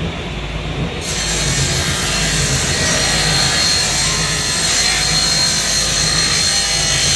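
A table saw blade cuts through a wooden board with a loud whine.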